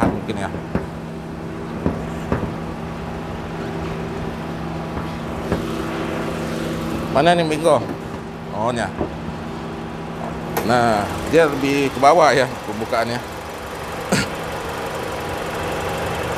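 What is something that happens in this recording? A car engine idles steadily.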